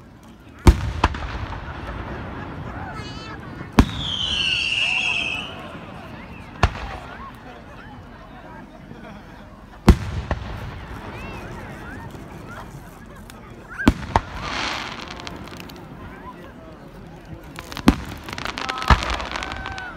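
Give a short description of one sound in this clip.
Fireworks burst overhead with loud, echoing booms.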